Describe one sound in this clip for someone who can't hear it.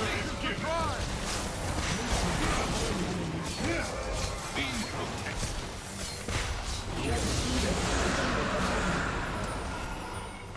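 Game spell effects crackle and burst during a fight.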